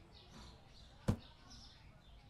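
A cardboard box thuds onto a wooden floor.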